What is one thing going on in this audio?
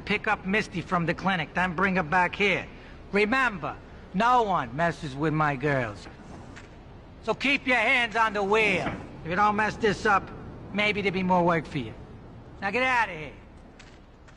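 A man speaks firmly, giving orders.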